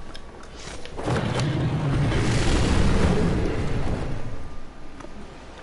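Wind rushes loudly past during a fast glide through the air.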